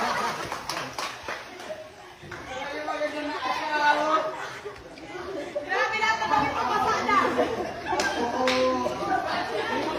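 Water splashes as a person thrashes in a pool.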